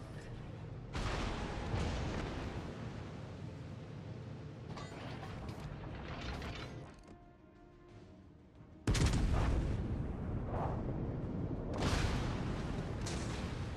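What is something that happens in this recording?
Heavy naval guns fire with loud, deep booms.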